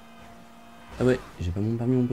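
Two cars crash together with a thud and scrape.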